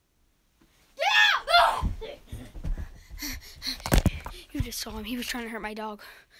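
A boy shouts and talks excitedly close by.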